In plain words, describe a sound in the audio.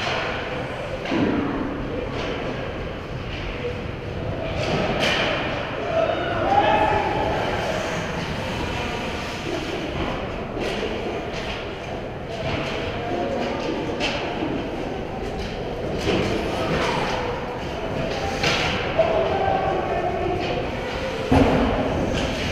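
Ice skates scrape and carve across the ice in a large echoing rink.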